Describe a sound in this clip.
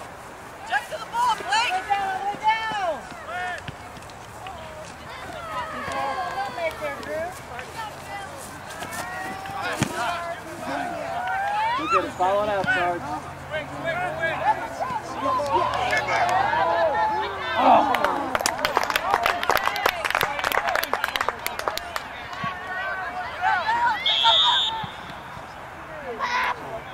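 Spectators shout and cheer outdoors.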